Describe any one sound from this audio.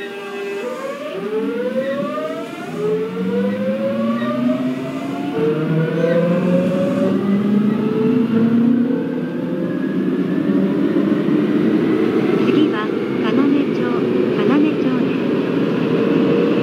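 Train wheels rumble on the rails, growing louder.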